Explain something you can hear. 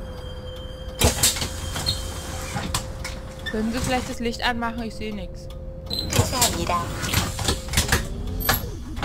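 Bus doors clatter and thump open and shut.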